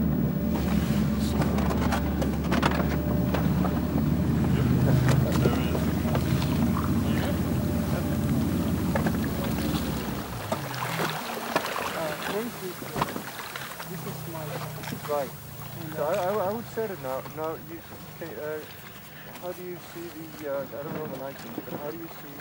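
Water splashes and churns against a moving boat.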